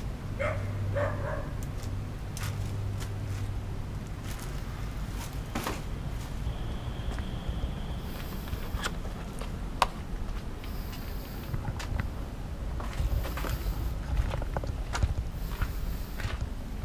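Footsteps crunch on rough, gravelly ground.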